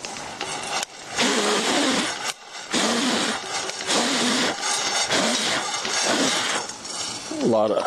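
Nuts rattle and shake in a metal pot.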